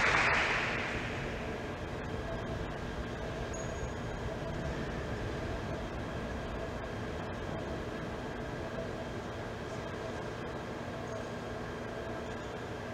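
A large crowd murmurs quietly.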